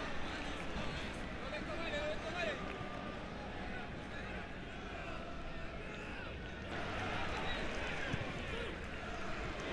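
A large crowd roars in an open stadium.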